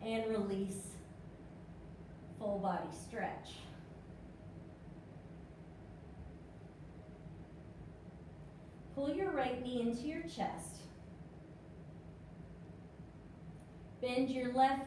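A woman speaks calmly, giving instructions in short phrases.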